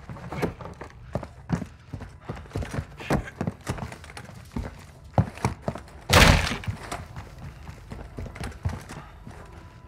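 A wooden door swings open.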